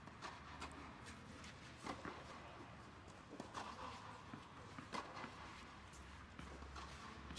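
Footsteps scuff softly on a clay court.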